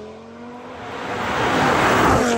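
A car rushes closer, with its tyres hissing on the road.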